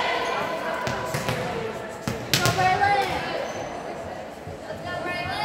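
Young women call out to each other in a large echoing gym.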